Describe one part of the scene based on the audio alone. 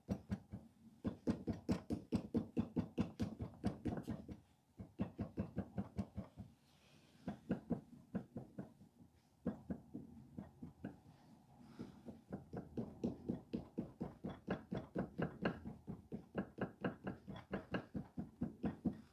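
A wooden paddle taps rapidly and steadily on soft clay, with a few short pauses.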